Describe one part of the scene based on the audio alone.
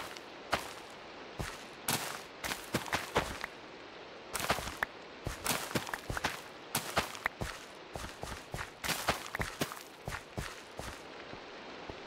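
Crops snap and rustle in quick bursts as they are broken in a video game.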